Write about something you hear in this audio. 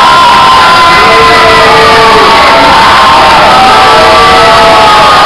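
A crowd chatters and murmurs in an echoing hall.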